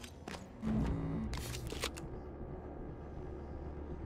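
A shotgun is readied with a metallic clack.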